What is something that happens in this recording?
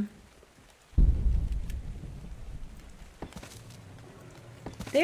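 A wooden structure collapses with a deep, rumbling thud.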